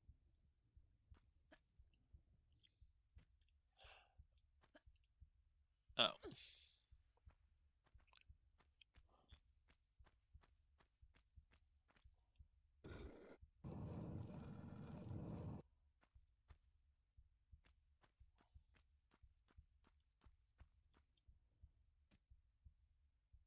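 Quick footsteps patter on a hard stone floor.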